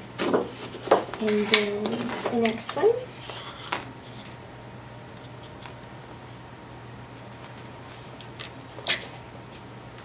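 Paper rustles and slides as a sheet is handled.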